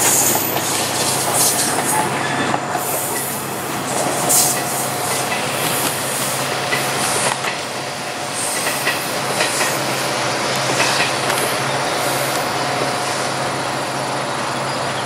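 A passenger train rumbles steadily along the tracks.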